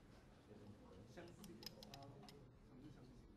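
Small clicks of a thin rod being handled.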